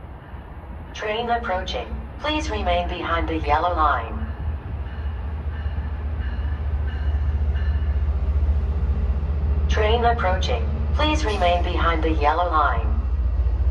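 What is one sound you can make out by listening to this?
A train horn blows loudly, twice.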